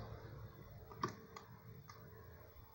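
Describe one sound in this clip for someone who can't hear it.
Small metal parts click and tap as a hand works at a device.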